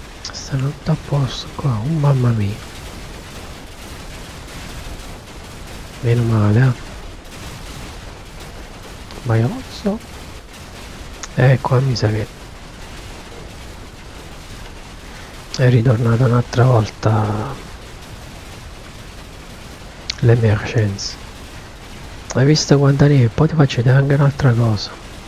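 A man talks casually into a close microphone in short bursts.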